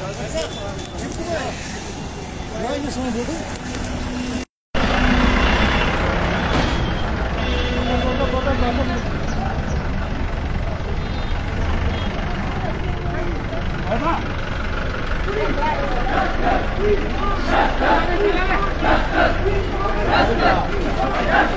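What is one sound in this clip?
A crowd of men shouts and talks outdoors.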